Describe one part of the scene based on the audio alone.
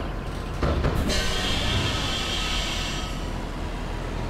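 Bus doors close with a pneumatic hiss.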